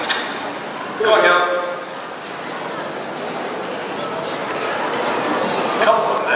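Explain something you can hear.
A man calls out commands loudly in a large echoing space.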